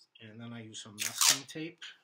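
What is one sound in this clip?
Adhesive tape rips off a roll.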